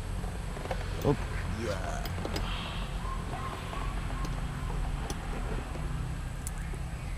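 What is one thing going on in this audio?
Metal tools clink against a motorcycle frame.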